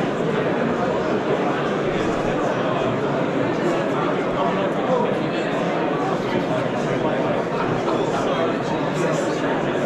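A crowd of people chatters in a large, busy hall.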